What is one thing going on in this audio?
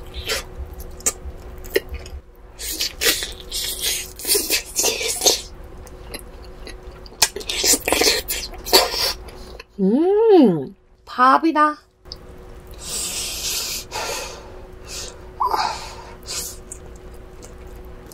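A young woman bites and chews crunchy food close to a microphone.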